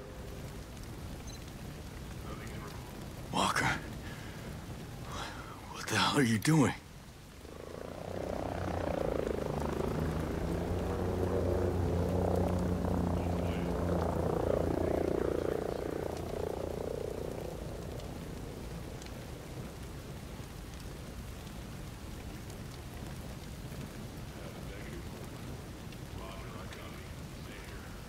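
A fire crackles and burns nearby.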